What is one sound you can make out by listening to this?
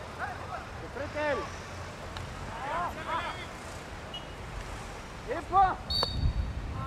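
Men shout short calls to each other outdoors.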